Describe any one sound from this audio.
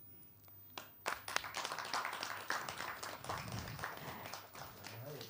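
People applaud with scattered clapping.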